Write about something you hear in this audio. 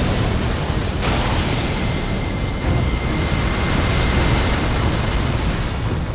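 A magic beam blasts with a loud, rushing roar.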